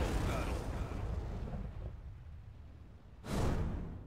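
Flames roar and slowly die down.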